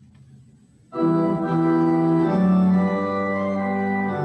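A man sings steadily into a microphone.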